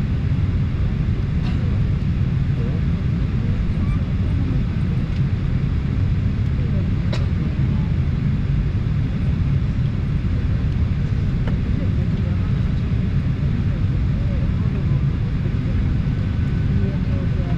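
A jet engine hums with a steady low roar.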